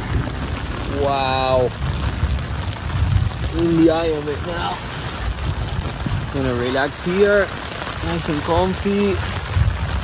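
An adult man talks close to the microphone.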